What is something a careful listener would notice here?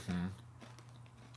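A man hums briefly with his mouth closed, close by.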